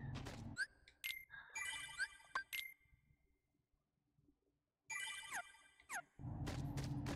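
Short electronic menu beeps chime.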